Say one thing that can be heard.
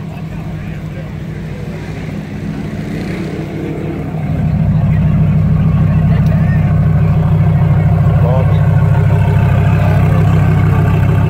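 A sports car engine idles with a deep, steady rumble, growing louder partway through.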